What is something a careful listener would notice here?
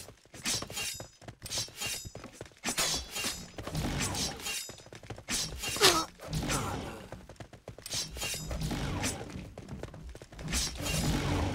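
A knife slashes through the air with sharp swooshes.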